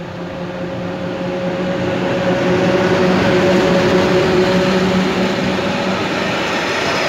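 An electric locomotive hums loudly as it passes close by.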